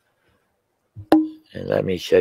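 A glass ball knocks as it is set down on a table.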